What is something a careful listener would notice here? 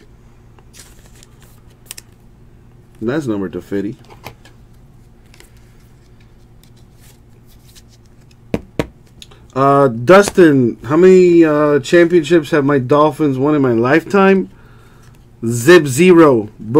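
Trading cards slide and flick against each other in hands.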